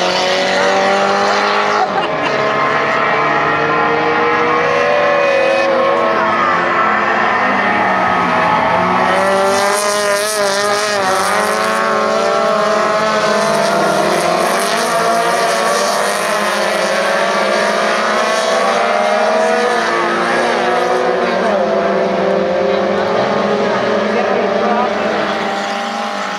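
Several small race car engines roar and whine loudly as they race past.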